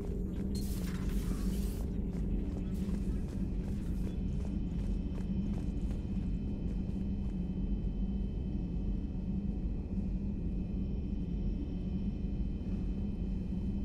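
A deep engine hum drones steadily.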